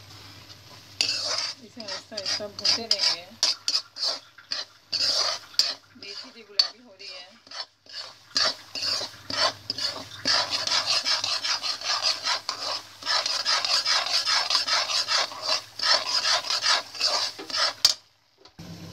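A spoon scrapes and stirs a gritty mixture in a metal bowl.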